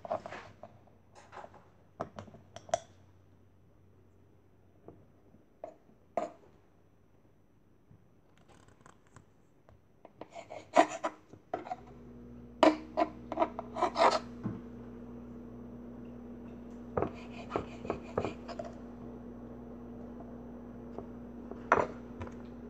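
A knife taps and thuds on a wooden board, cutting soft clay.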